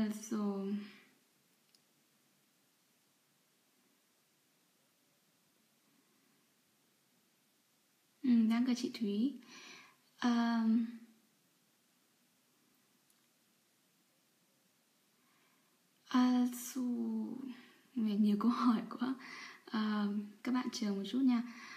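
A young woman speaks calmly and close up, with long pauses.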